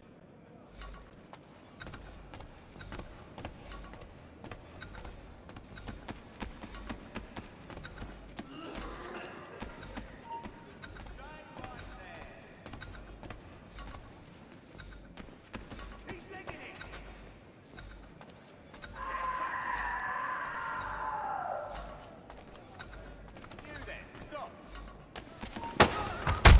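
Footsteps patter quickly on wooden floors and stairs.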